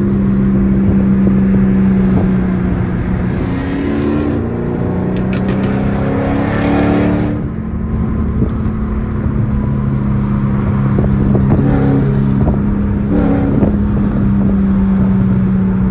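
Tyres roar on a highway.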